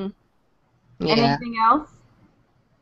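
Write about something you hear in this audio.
A second young woman speaks cheerfully over an online call.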